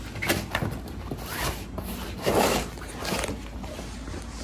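A cardboard box scrapes and rubs as it is handled.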